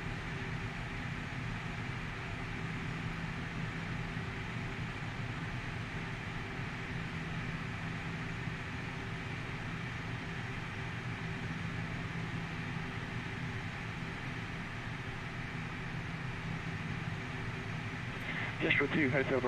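Jet engines hum steadily at idle.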